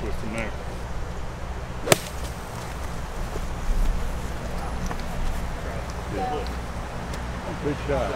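Outdoors, a steady breeze blows.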